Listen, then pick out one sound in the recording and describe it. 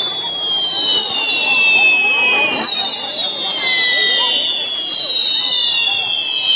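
A firework fountain hisses and crackles loudly.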